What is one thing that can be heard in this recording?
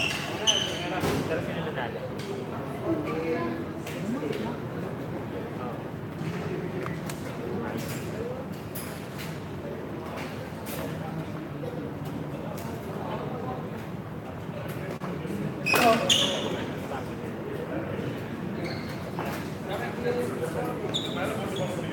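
Men's voices chatter in a large echoing hall.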